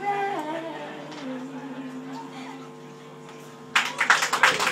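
A young woman sings into a microphone.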